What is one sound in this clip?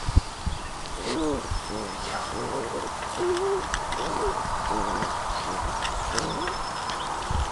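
Puppies whimper and squeal as they play.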